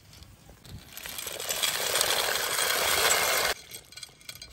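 Dry pasta pours and rattles into a pot of water.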